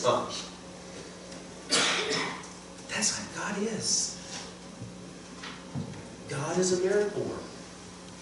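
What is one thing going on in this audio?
A middle-aged man speaks calmly into a microphone in a large room, with pauses.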